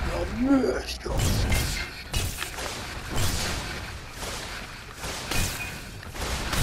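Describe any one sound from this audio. Flames roar and crackle from a magical fire blast.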